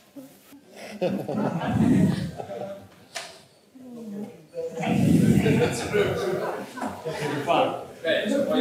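A man speaks steadily into a microphone in a large room.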